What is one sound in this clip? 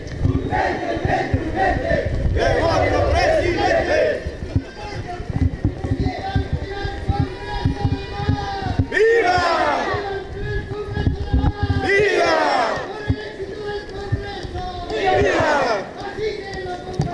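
A large crowd of men and women chants loudly outdoors.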